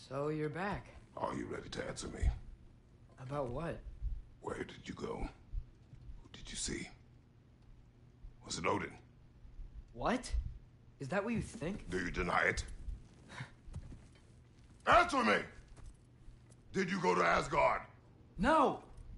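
A man speaks in a deep, stern voice, close by.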